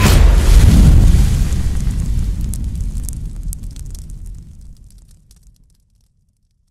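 Fire roars with a deep rumble and slowly fades away.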